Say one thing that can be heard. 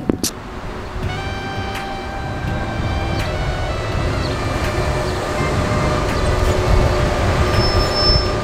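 A city bus approaches with a rising engine whine.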